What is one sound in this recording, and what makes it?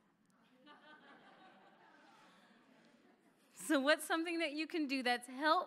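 A woman speaks warmly and with animation into a microphone in a large echoing room.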